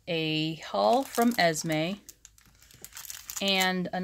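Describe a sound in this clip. Plastic bags crinkle and rustle as they are handled.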